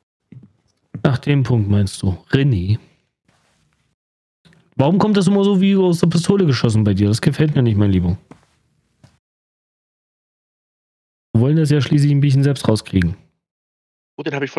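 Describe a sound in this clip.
A man talks animatedly close to a microphone.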